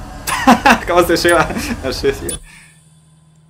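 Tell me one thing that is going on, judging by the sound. A young man laughs and exclaims excitedly into a microphone.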